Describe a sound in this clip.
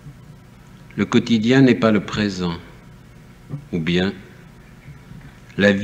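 A man speaks calmly and close up, in short phrases.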